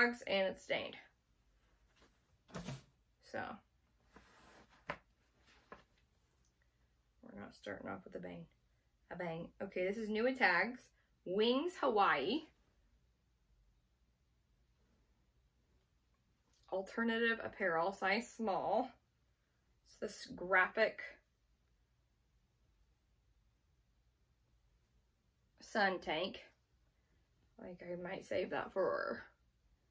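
A woman talks calmly and close by, in short bursts with pauses.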